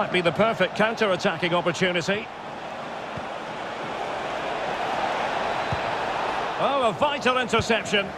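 A stadium crowd cheers and roars steadily.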